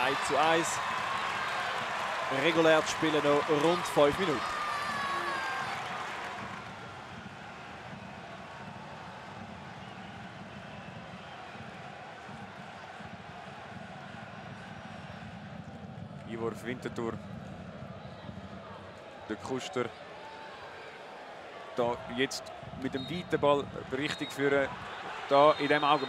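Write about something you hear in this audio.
A stadium crowd roars and cheers loudly, then settles to a steady murmur.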